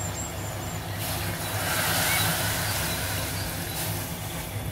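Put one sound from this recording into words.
Water pours into a pot and splashes.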